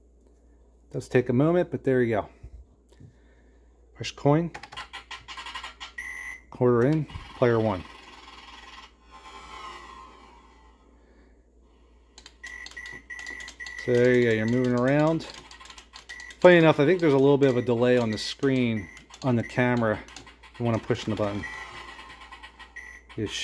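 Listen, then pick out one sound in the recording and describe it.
An arcade game plays chiptune music and electronic sound effects.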